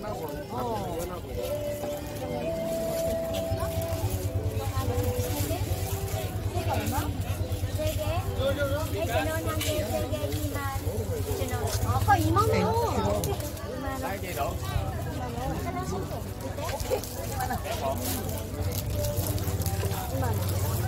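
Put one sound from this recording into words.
Young women talk with animation nearby.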